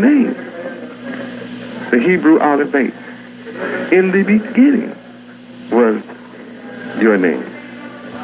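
A man preaches with animation into a microphone, in short emphatic phrases.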